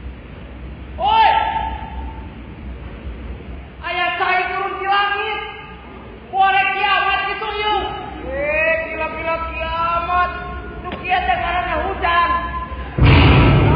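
A man sings loudly in a large echoing hall.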